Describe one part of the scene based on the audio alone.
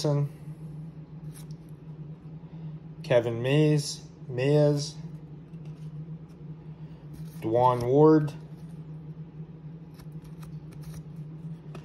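Trading cards slide and rustle softly between fingers.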